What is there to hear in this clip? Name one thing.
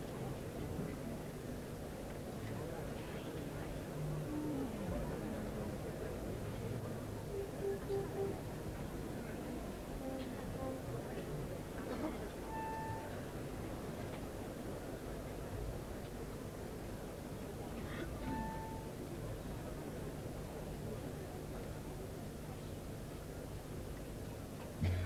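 A large group of people murmurs and chatters far off in a wide open space.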